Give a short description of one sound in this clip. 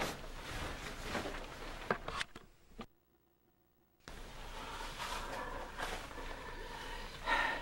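Stiff, shiny fabric rustles and crinkles up close.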